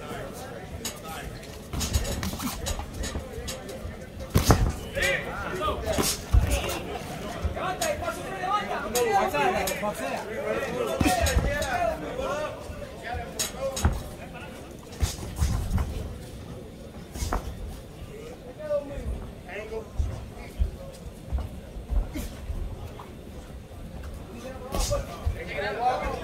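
Gloved punches thud and slap sharply.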